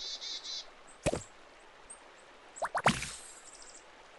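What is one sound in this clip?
A quick whooshing swoosh sounds.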